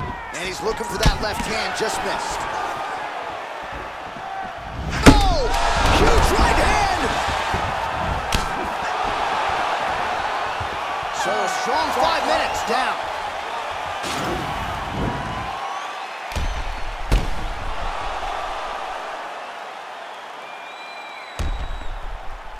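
Punches thud against bodies in sharp blows.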